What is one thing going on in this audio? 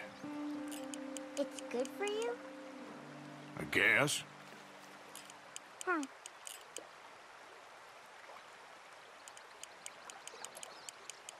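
Water laps softly at a lakeshore.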